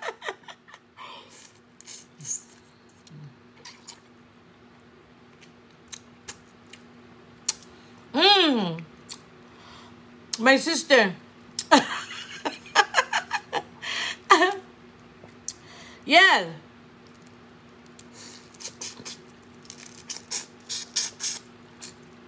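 A woman slurps and sucks noisily on crawfish.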